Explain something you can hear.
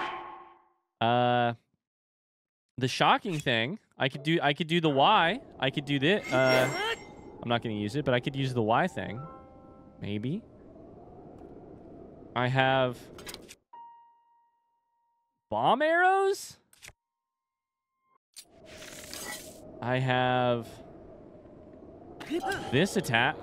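Game sound effects chime and whoosh.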